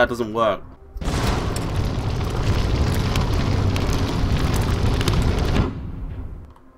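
A fireball roars.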